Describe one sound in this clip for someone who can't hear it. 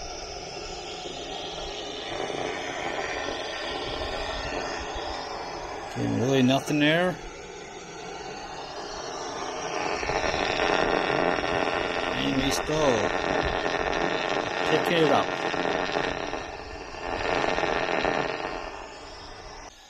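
An electronic leak detector hisses and crackles steadily.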